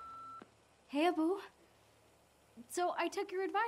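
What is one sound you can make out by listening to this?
A young woman speaks cheerfully into a telephone, close by.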